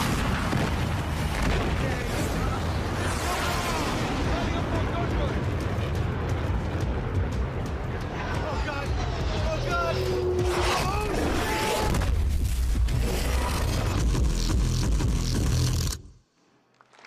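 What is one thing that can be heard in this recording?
A large explosion booms in a video game.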